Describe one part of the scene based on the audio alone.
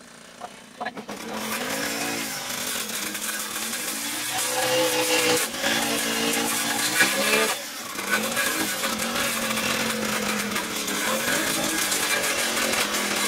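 A string trimmer line whips through dry grass.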